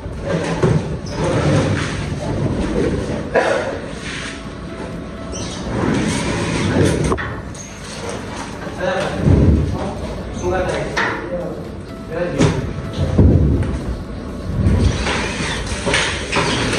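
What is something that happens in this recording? Ceiling panels knock and rattle as they are pushed into place.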